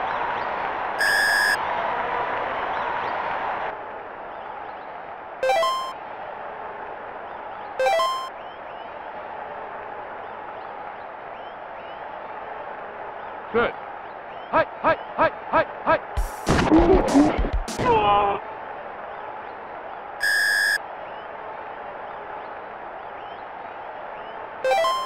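Short electronic beeps chime now and then.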